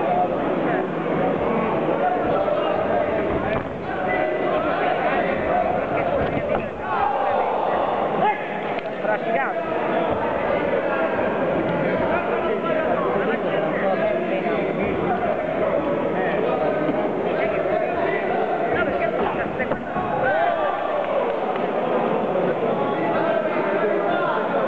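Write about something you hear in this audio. A crowd cheers and shouts throughout, in a large echoing hall.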